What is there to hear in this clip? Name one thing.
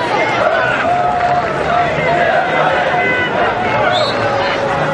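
A large stadium crowd sings and chants.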